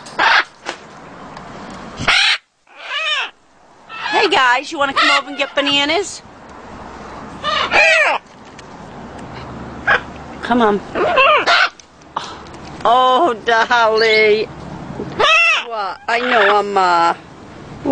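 Parrots squawk and screech loudly close by, in repeated bursts.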